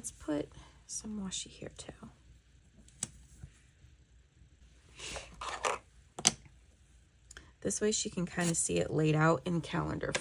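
Tape peels off a roll with a short ripping sound.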